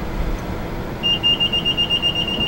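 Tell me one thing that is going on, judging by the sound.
A car's reversing sensor beeps in quick repeated pips.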